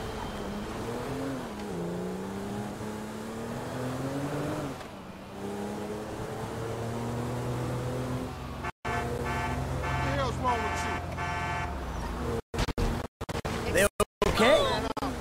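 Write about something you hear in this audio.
A car engine hums and revs as the car drives along a road.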